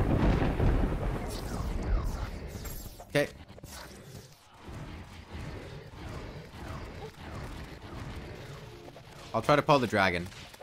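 Game weapons fire with rapid zaps and blasts.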